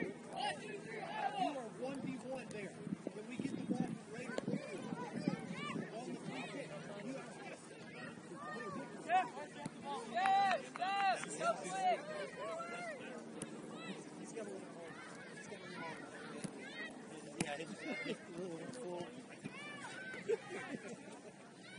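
Spectators on the sideline chatter and call out outdoors.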